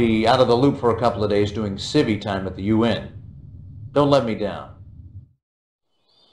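A man speaks calmly and firmly through a speaker.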